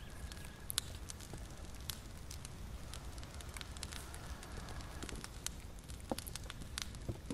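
Candle flames crackle softly.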